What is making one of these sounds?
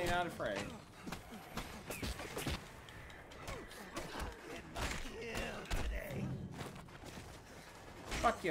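Punches thud in a brawl.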